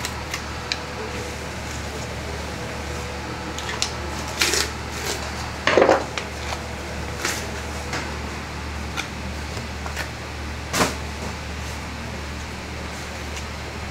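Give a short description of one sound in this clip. A knife slices and scrapes through raw meat.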